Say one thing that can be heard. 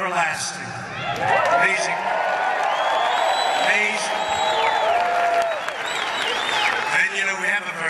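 A large crowd cheers and claps in a big echoing hall.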